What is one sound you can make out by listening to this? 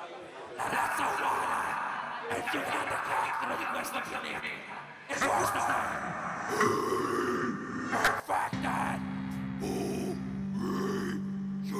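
A man screams into a microphone over the music.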